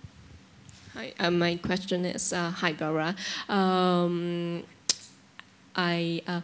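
A woman speaks clearly through a microphone.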